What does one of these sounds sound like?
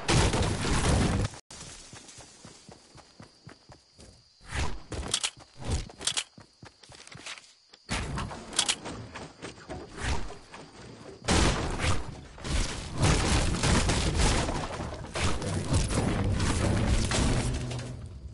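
A pickaxe strikes wood again and again with sharp chopping thuds.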